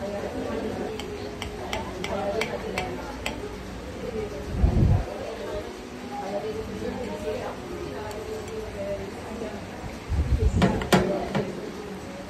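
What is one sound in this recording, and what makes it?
A knife and fork scrape and clink against a plate.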